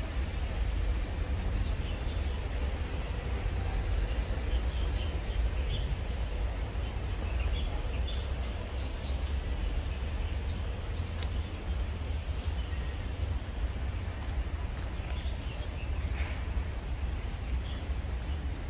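Wind blows outdoors and rustles leaves in the trees.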